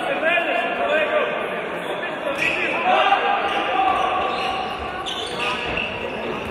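Sports shoes squeak sharply on a hard court.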